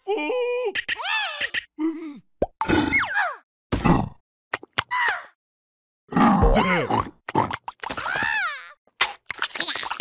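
Cartoon creatures chatter and squeal in high, silly voices.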